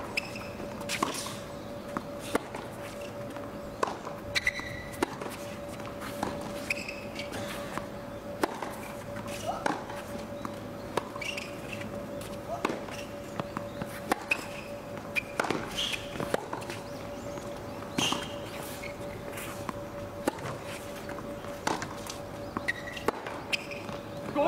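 Tennis balls are struck by rackets in a long rally, with sharp pops back and forth.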